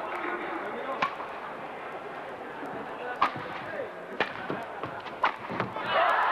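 A racket strikes a shuttlecock with sharp smacks in a large echoing hall.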